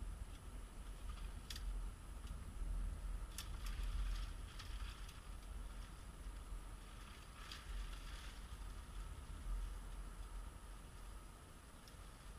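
A person brushes through dry branches and leaves nearby.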